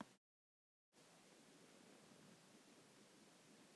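Hands smooth and rustle a sheet of fabric.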